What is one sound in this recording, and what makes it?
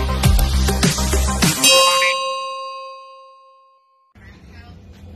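A notification bell chimes brightly and rings out.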